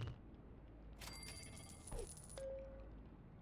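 A bright chiming jingle rings out.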